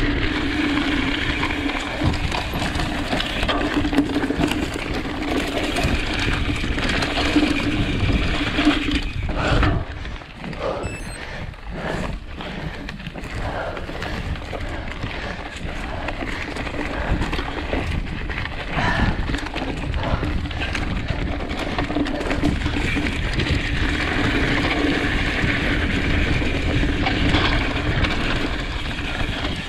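Bicycle tyres rumble and crunch over a rough dirt trail.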